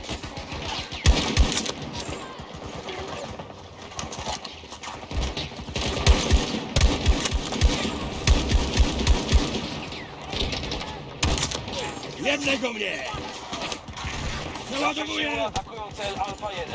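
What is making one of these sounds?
Gunfire rattles in rapid bursts, close by.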